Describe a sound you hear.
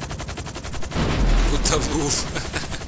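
A helicopter splashes heavily into water.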